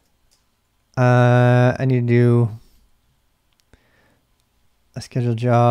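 A middle-aged man speaks loudly and with drawn-out, animated words into a close microphone.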